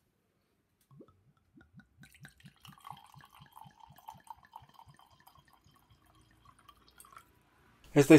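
Wine glugs and splashes as it pours into a glass.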